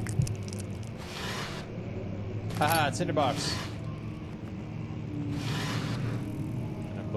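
A wooden drawer slides open and shut.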